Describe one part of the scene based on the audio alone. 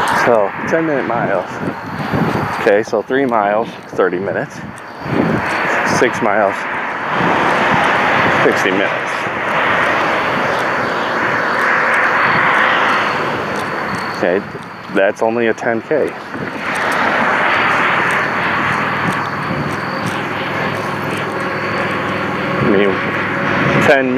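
Wind rushes and buffets the microphone.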